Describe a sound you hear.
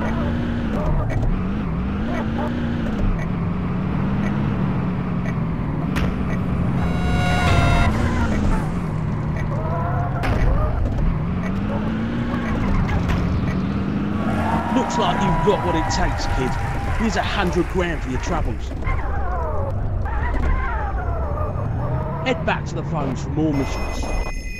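A car engine hums and revs, rising and falling in pitch.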